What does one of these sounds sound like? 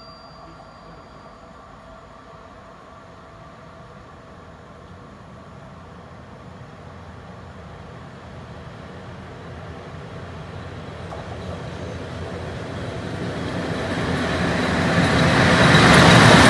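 A freight train approaches, its rumble growing steadily louder.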